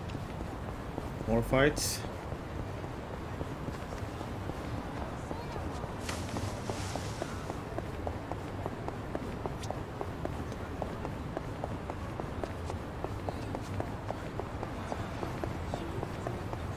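Footsteps patter quickly on pavement.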